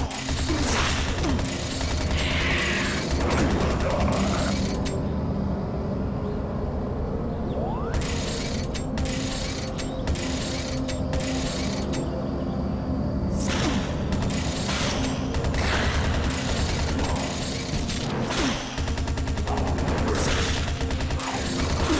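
Explosions burst.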